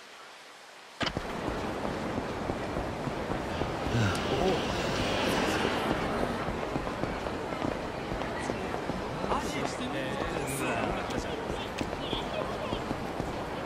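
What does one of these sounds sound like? A busy street hums with crowd noise.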